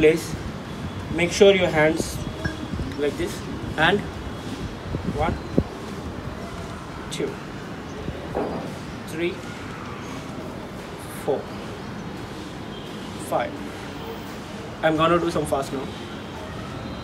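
A young man speaks calmly close by, outdoors.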